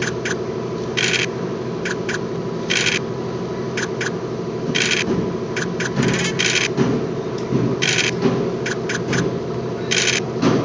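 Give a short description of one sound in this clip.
Game dice rattle as they roll.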